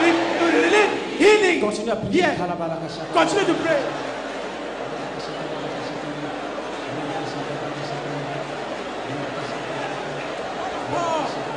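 A large crowd cheers and calls out.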